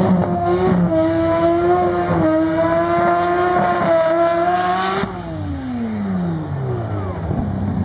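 Tyres screech as a car spins its wheels in a burnout.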